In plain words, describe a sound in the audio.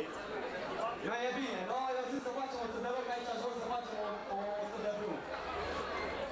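A man sings loudly through a microphone over loudspeakers, in the open air.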